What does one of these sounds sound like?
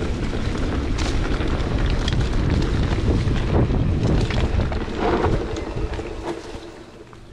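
A bicycle rattles and clanks over bumps.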